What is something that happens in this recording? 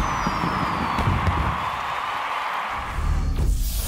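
Fireworks crackle and pop overhead.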